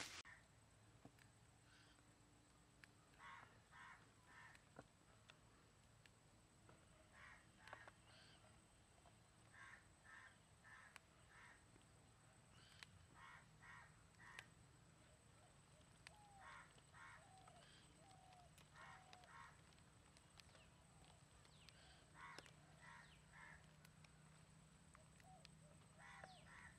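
Green beans snap crisply between fingers, close by.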